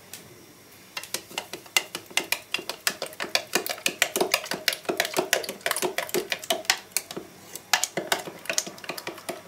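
A spoon stirs quickly in a glass, clinking steadily.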